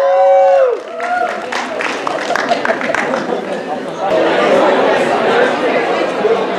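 An audience claps and cheers as the lights go down.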